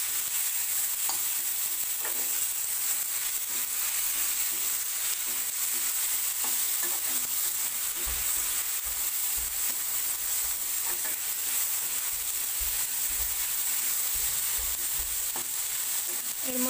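A metal spatula scrapes and clinks against a wok.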